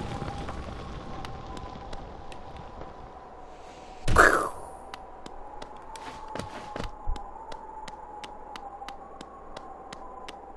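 A small character's footsteps tap quickly and evenly.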